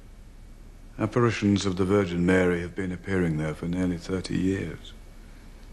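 An older man speaks calmly and closely, in a low voice.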